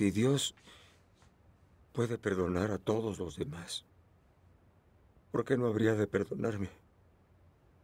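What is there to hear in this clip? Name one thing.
A middle-aged man speaks firmly nearby, in short phrases with pauses.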